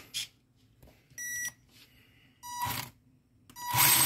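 A small electronic unit beeps a few short high tones.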